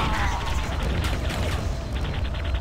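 A plasma gun fires with crackling electric bursts.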